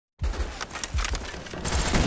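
A rifle fires a sharp shot.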